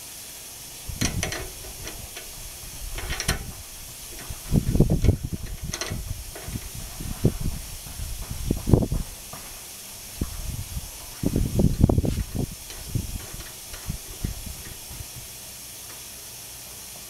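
Metal parts clink and knock against a lathe.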